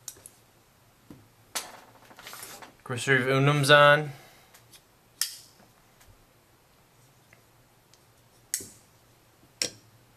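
Metal knives clink as they are set down on a hard surface.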